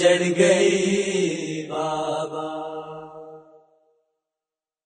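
A young man sings a slow, mournful chant close to the microphone, and his voice fades away.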